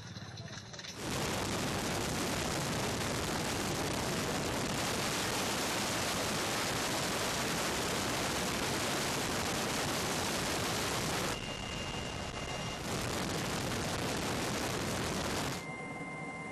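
A helicopter's engine and rotor roar inside its cabin.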